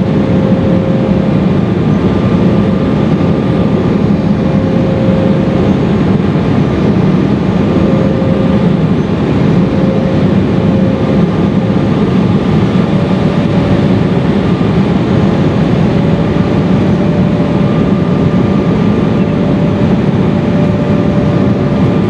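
Jet engines roar steadily in a loud, droning rush inside an airplane cabin.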